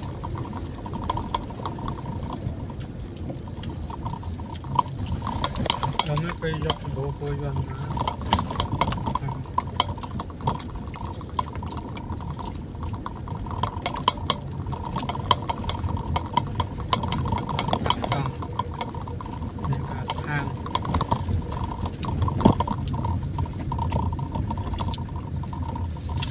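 Raindrops patter on a windshield.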